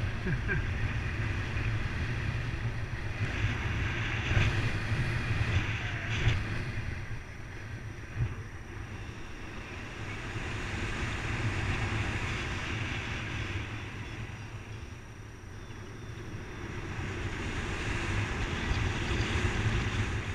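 Wind rushes past a microphone in flight on a paraglider.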